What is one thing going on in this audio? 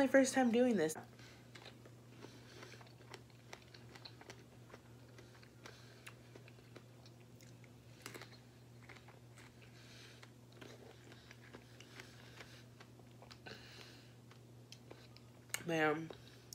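A young woman chews and crunches fruit close to a microphone.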